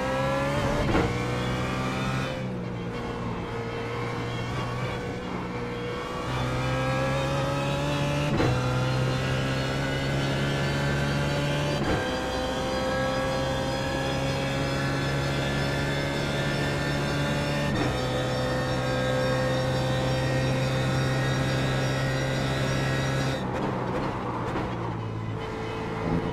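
A racing car engine roars, rising in pitch as it speeds up and dropping sharply at each gear change.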